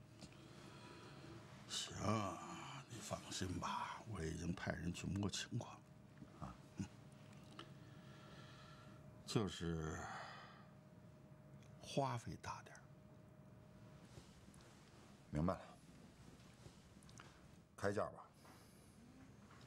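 A younger man speaks in a low, calm voice, close by.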